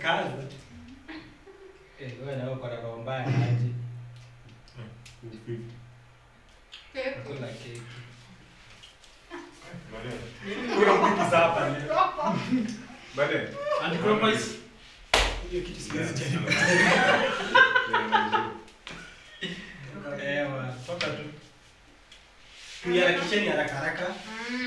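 A group of young men and women talk and exclaim with animation nearby.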